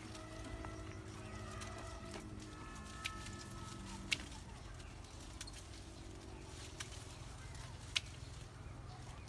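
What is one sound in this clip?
Leaves rustle and twigs snap as a bush is picked.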